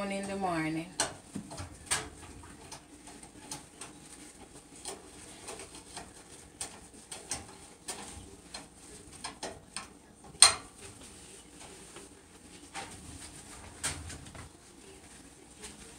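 Small items clatter and tap on a counter.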